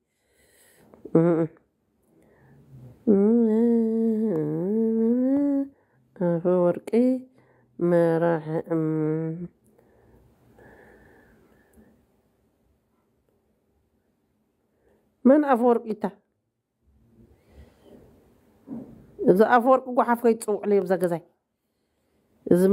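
A woman sings drawn-out phrases, with long pauses between them.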